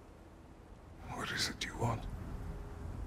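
A man speaks in a deep, low voice close by.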